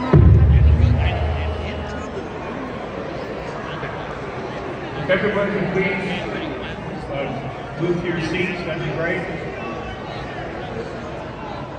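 A woman speaks into a microphone and is heard over loudspeakers in the hall.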